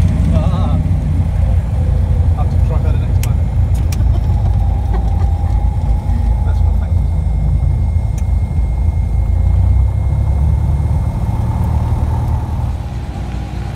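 A small plane's engine drones loudly and steadily from inside the cabin.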